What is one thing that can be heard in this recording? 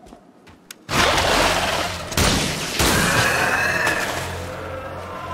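A plant pod bursts with a loud hissing rush of gas.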